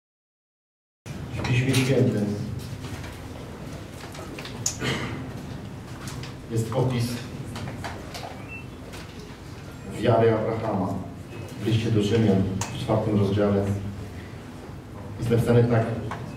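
A man speaks calmly into a headset microphone, heard through loudspeakers.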